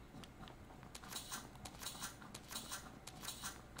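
Footsteps tap on a hard roof.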